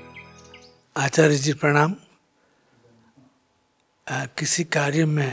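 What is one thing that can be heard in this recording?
An elderly man speaks calmly and thoughtfully, close by.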